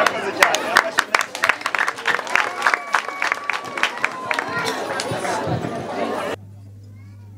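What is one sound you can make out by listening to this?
Young women sing together.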